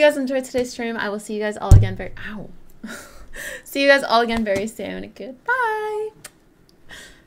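A young woman talks cheerfully and close into a microphone.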